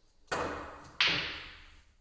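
A cue strikes a billiard ball sharply.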